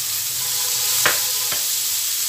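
A spatula knocks against the rim of a pan.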